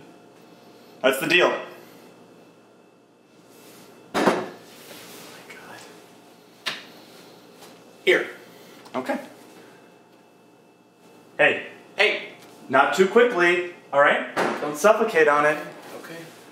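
A young man speaks casually in short bursts nearby.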